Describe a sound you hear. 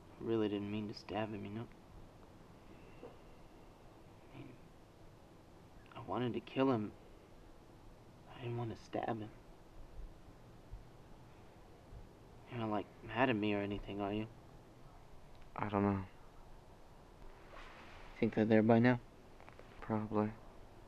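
A man speaks quietly and calmly nearby, in short bursts with pauses.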